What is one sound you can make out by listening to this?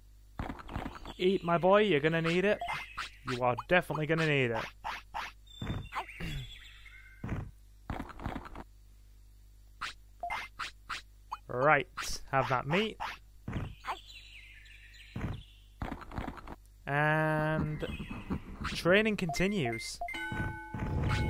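A small cartoon creature lets out high, warbling cries.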